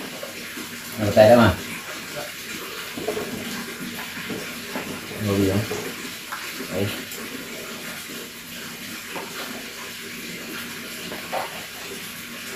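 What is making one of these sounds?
A woman and men talk casually close by.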